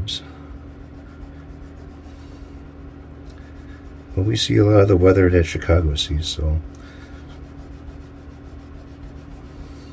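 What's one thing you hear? A cloth rubs back and forth over metal frets.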